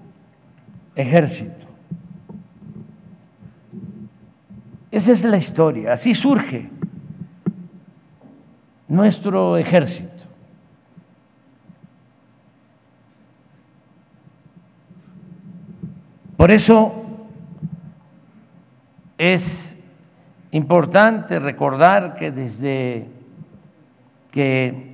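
An elderly man speaks slowly and deliberately into a microphone, with long pauses, in a hall with some echo.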